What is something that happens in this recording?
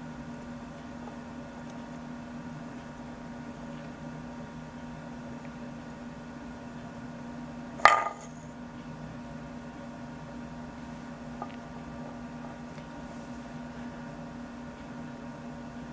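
A wooden top spins on a wooden bowl with a soft, steady whirr.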